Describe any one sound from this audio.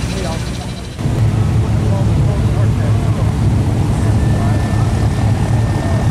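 Car engines rumble steadily in slow traffic.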